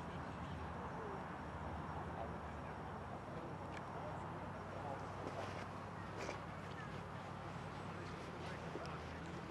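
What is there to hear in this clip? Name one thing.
Men talk quietly outdoors at a distance.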